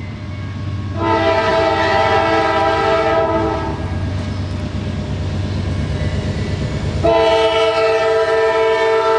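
A locomotive horn blasts loudly, twice.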